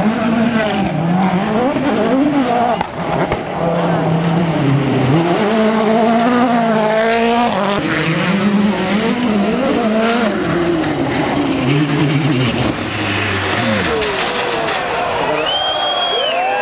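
Rally car engines roar and rev hard, rising and falling through the gears.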